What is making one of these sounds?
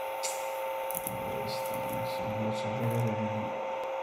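Playing cards are placed and slid on a table.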